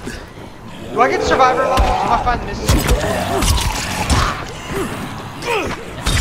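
A zombie snarls and growls up close.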